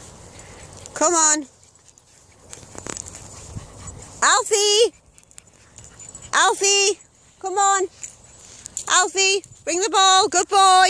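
A dog whines in loud, high, drawn-out cries, again and again.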